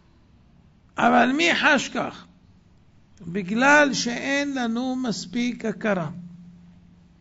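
A young man speaks calmly and quietly.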